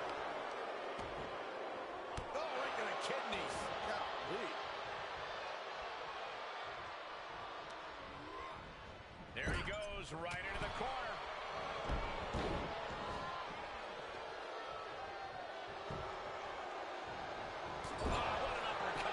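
Heavy bodies slam and thud onto a ring mat.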